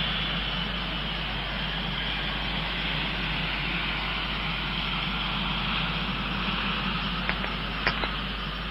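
Jet engines roar loudly and steadily as an airliner lands and slows down.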